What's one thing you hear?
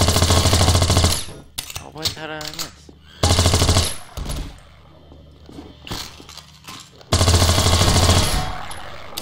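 A submachine gun fires rapid bursts in an echoing room.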